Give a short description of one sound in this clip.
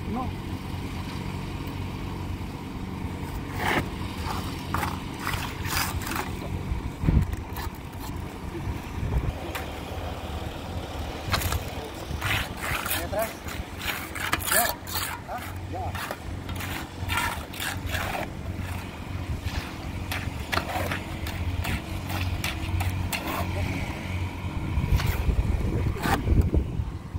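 A shovel scrapes concrete in a metal wheelbarrow.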